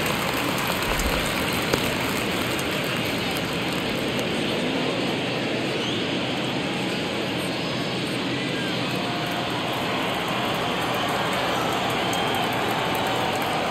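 A large stadium crowd murmurs steadily throughout.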